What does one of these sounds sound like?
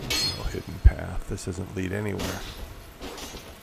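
A sword clangs sharply against stone.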